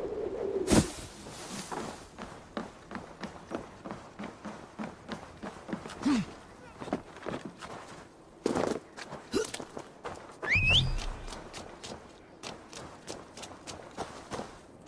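Footsteps thud on wooden planks and then on dirt.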